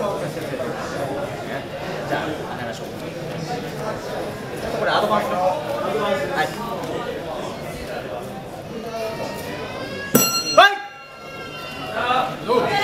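A man calls out loudly in a room with some echo.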